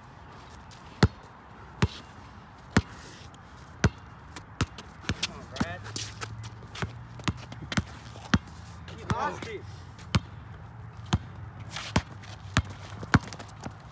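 A basketball bounces repeatedly on concrete outdoors.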